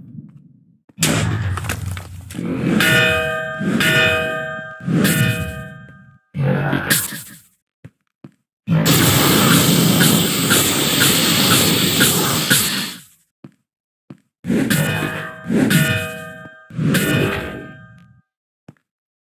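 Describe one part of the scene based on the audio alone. Heavy metallic blows clang and ring out in quick bursts.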